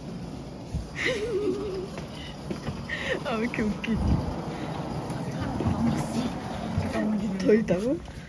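Suitcase wheels rumble over a hard floor.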